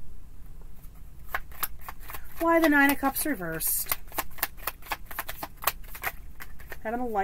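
Cards riffle and snap as they are shuffled.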